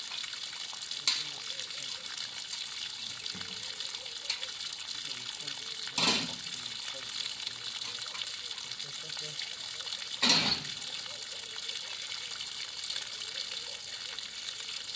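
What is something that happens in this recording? Water hisses steadily from a hose spraying onto soil.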